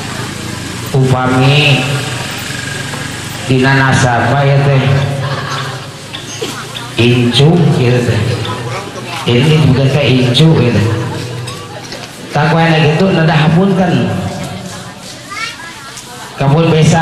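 A man sings in long held phrases into a microphone, heard through loudspeakers in an echoing space.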